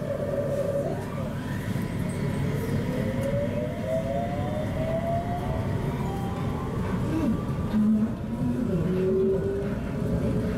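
Electric motors whine, rising in pitch as the train gathers speed.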